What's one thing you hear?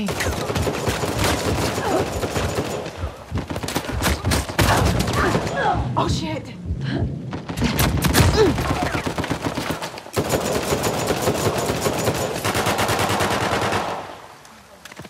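Rapid gunfire crackles and pops.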